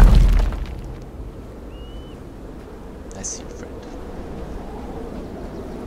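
Footsteps scuff softly on stone.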